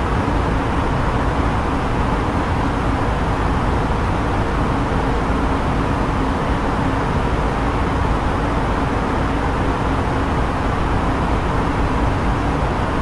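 Jet engines drone steadily, heard from inside an aircraft in flight.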